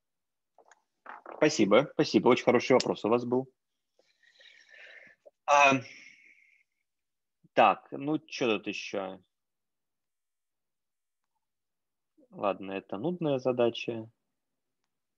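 A man speaks calmly through an online call, explaining.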